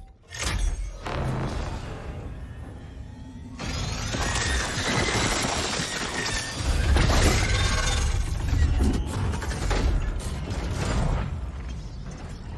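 A mechanical device whirs and clanks.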